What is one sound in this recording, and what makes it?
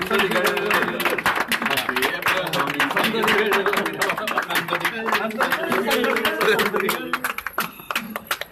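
A crowd of men and women sings and cheers loudly.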